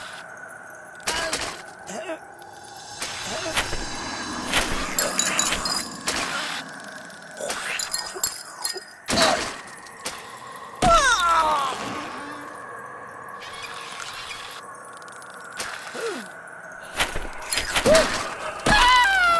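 Soft game sound effects thump as a small figure jumps and lands on car roofs.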